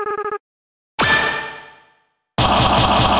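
A sudden loud crash rings out and fades.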